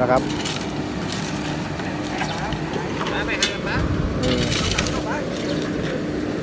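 A shovel scrapes through loose asphalt.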